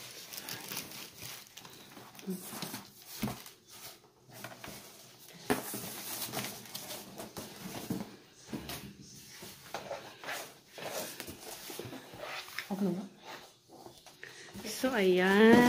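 Cardboard scrapes and rustles as a box is handled.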